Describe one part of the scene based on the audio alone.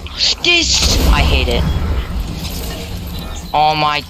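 Shotgun blasts ring out in quick succession.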